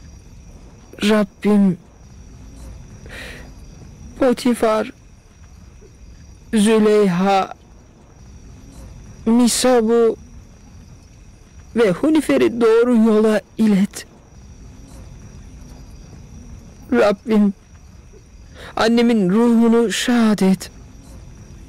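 A boy speaks in short, pleading phrases with pauses between them.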